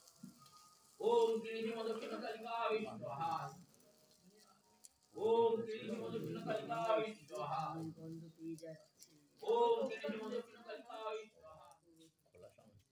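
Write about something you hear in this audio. An elderly man chants a prayer in a strong, ringing voice.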